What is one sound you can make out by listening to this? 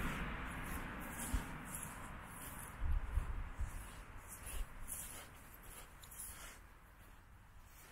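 Wind blows in gusts outdoors, rumbling against the microphone.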